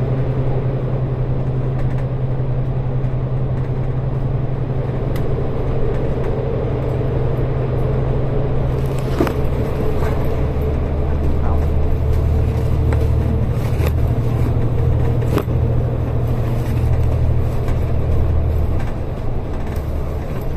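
Traffic roars and echoes through a tunnel.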